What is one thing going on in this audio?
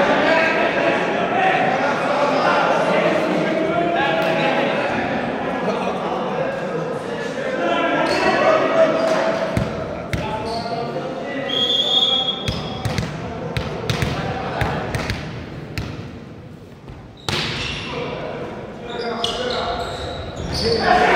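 Young men shout and call out in a large echoing hall.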